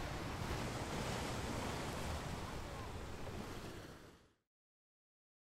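Water laps gently against a wooden boat.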